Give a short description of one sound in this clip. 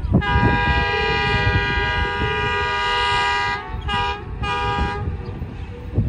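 A diesel locomotive's air horn blasts, then sounds twice more in short bursts.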